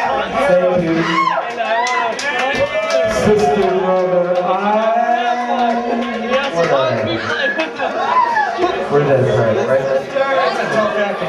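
An electric guitar plays loud, bending notes through an amplifier.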